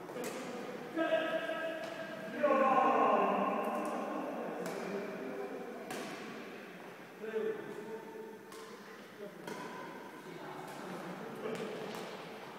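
Men call out and talk across the hall.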